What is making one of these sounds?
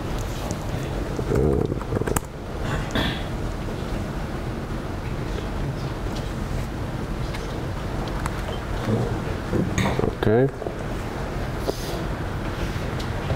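Laptop keys click as a man types.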